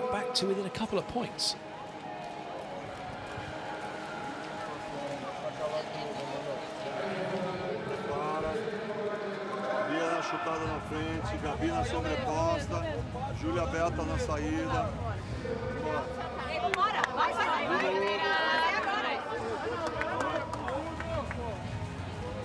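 An older man talks quickly and firmly to a group, close by.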